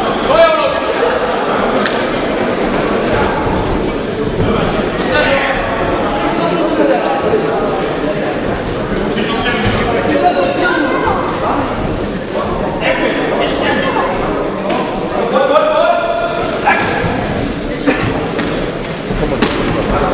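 A crowd shouts and cheers loudly in a large echoing hall.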